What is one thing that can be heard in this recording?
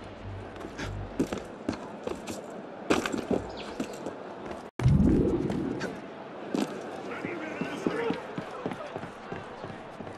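Footsteps scrape and thud on roof tiles.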